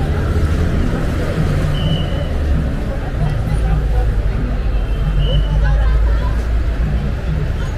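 A crowd of men and women chatter as they walk, outdoors.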